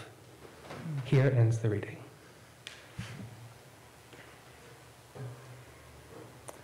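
A young man reads out through a microphone in an echoing hall.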